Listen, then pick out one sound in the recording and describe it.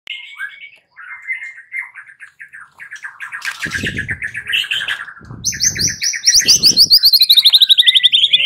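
A songbird sings close by in a rapid, varied warble that grows louder and faster.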